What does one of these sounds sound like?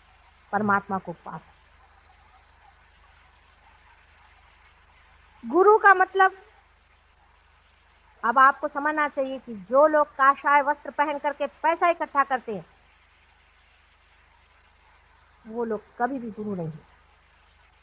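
A middle-aged woman speaks calmly in short phrases.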